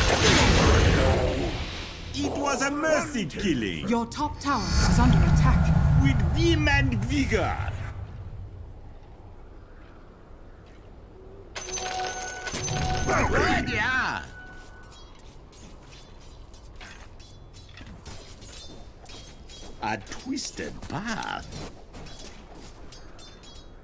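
Magic spells crackle and whoosh during a fight.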